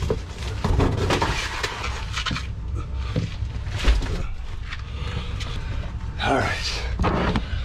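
A wooden cabinet knocks and bumps against a van floor.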